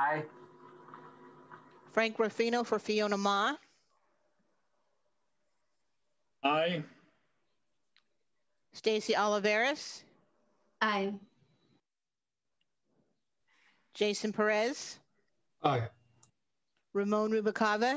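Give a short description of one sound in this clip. A man speaks calmly over an online call, with pauses between phrases.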